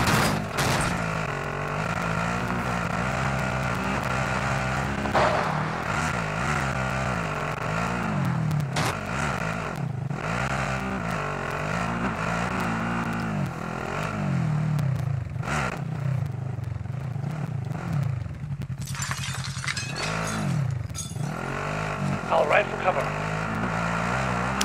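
A vehicle engine hums and revs up and down as it drives.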